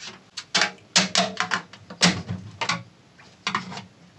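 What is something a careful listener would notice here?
A screwdriver taps against a plastic case.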